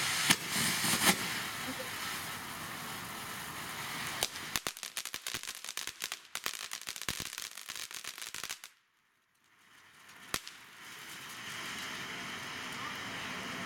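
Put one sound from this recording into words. Sparks from a firework fountain crackle and pop.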